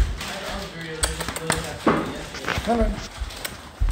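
Several women chat together nearby.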